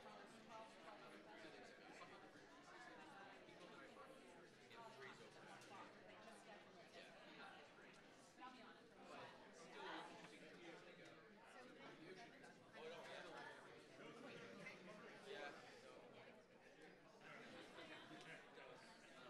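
A crowd of men and women chatter all around in a large echoing hall.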